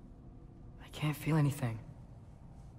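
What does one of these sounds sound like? A young woman speaks quietly with distress.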